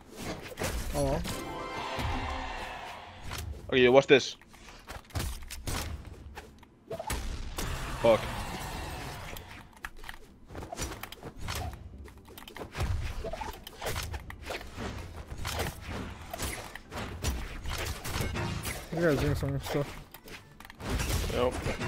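Fighting game hits and whooshes play in quick bursts.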